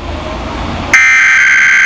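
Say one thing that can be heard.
A radio receiver gives a harsh, buzzing beep.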